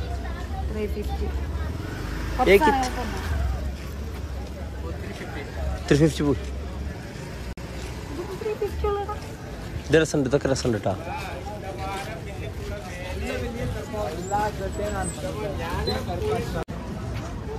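A busy street murmurs with distant voices.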